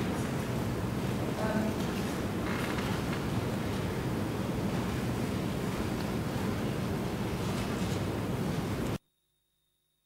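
An elderly man speaks slowly into a microphone.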